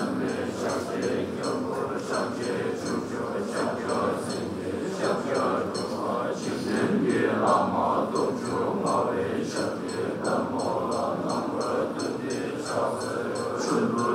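A group of young men chant together in low, steady voices.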